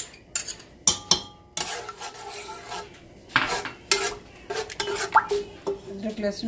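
A spatula scrapes and clatters against a metal pot.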